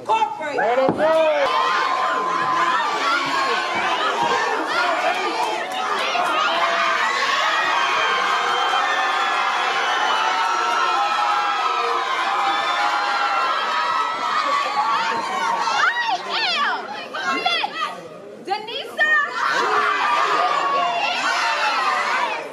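A large crowd cheers and screams loudly in an echoing hall.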